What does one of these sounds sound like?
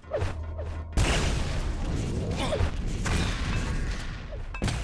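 Rockets explode with loud booms.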